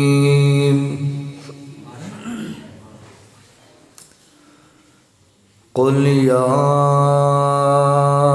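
A man chants in long, held notes through a microphone, pauses, then chants again.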